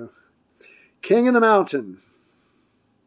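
An elderly man laughs loudly.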